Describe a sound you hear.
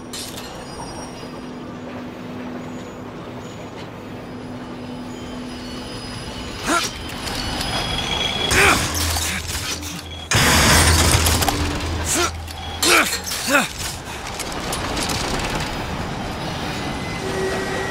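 A metal hook grinds and rattles loudly along a rail.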